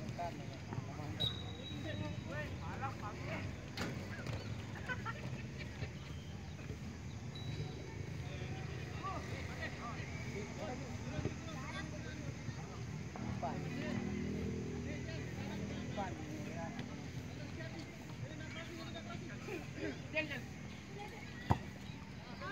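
Young players shout to each other across an open field outdoors.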